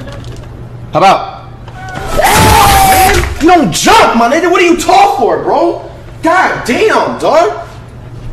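A young man shouts and yells angrily into a microphone.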